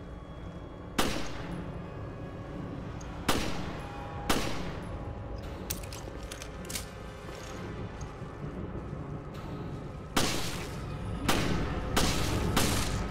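A handgun fires shots that echo in a metal room.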